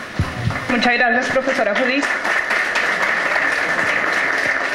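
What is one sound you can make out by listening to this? A small audience applauds.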